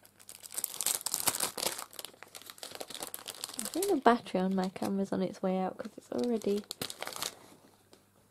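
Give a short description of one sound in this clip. Thin plastic film crinkles and rustles as it is handled.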